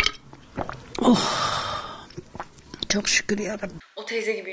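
An elderly woman speaks into a microphone.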